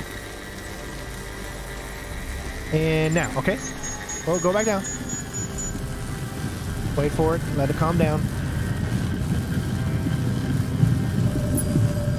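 A laser beam hums steadily, growing into a low rumble.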